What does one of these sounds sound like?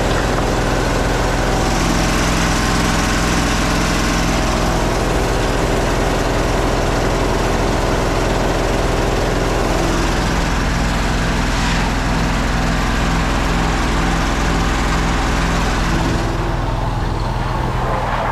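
An engine-driven pump runs loudly and steadily.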